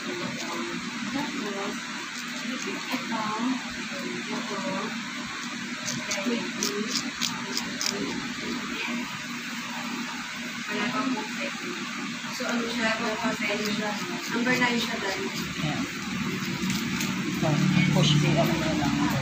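A nail file rasps back and forth against a fingernail.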